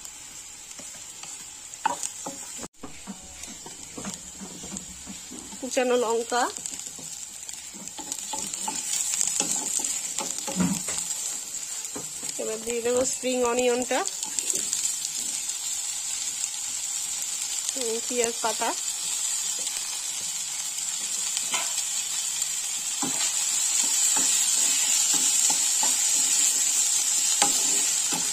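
A spatula scrapes and taps against a metal pan.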